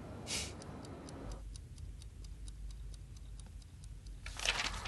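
A clock ticks steadily.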